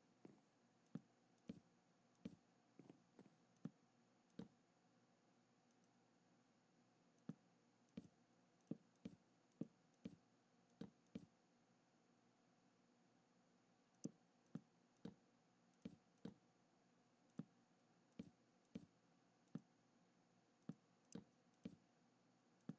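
Wooden blocks thud softly into place, one after another at an uneven pace.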